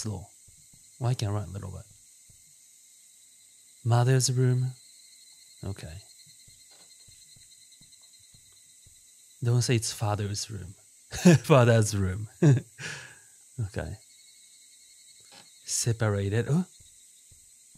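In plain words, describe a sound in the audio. A young man talks in short bursts through a close microphone.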